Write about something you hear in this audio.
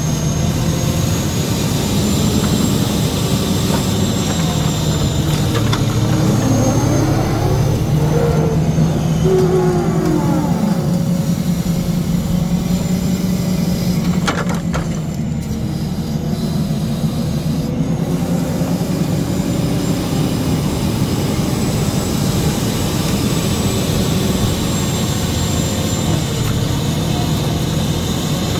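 Hydraulics whine as a crane arm swings and lifts.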